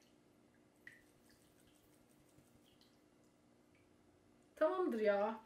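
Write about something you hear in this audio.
Liquid trickles and drips into a bowl.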